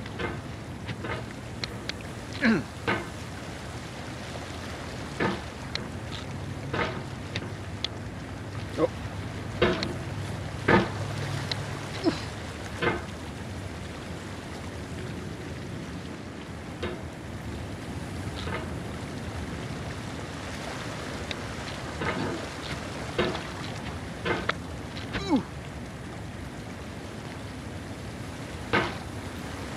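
A metal hammer knocks and scrapes against rocks again and again.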